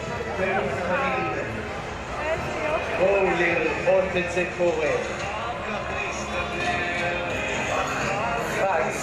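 Men and women chatter and call out nearby, outdoors.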